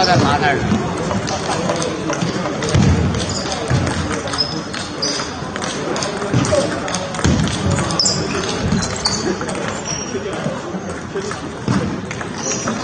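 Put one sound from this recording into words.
Sneakers squeak on the floor in a large echoing hall.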